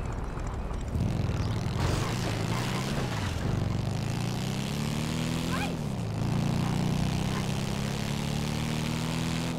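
A motorcycle engine starts up and revs as the bike speeds away.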